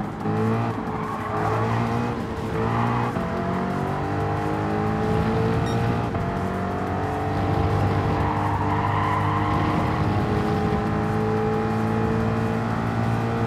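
A racing car engine roars loudly, rising in pitch as it speeds up and dropping briefly at each gear change.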